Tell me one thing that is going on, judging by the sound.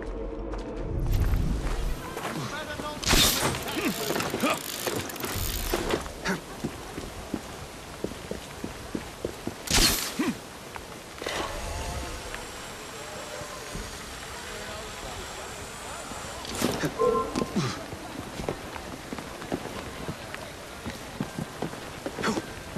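Hands and feet scrape and thump while climbing a stone wall.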